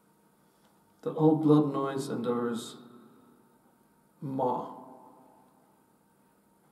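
A guitar chord rings out through an effects pedal and slowly fades.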